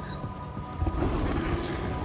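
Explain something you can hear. Footsteps scuff across a gritty floor.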